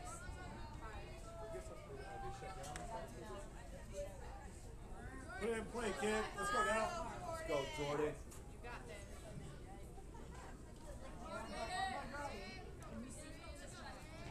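Young players shout and chatter from across an open field.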